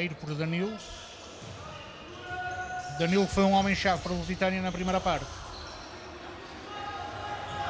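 A ball thuds as players kick it on an indoor court.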